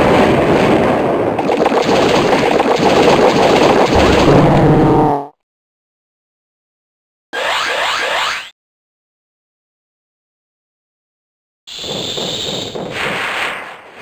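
Electronic game sound effects play in short bursts with silent gaps.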